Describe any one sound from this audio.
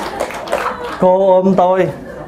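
A man speaks through a microphone in a drawn-out, sing-song voice.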